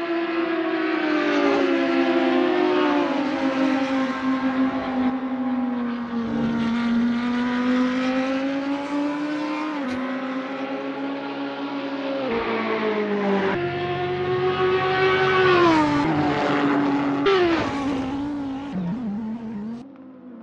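A race car engine roars, its pitch rising and falling as it revs and shifts gears.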